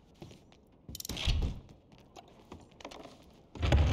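A wooden bookcase creaks and scrapes as it is pulled open.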